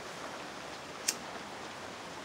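A lighter clicks once.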